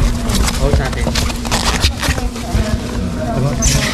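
A plastic bag rustles and crinkles.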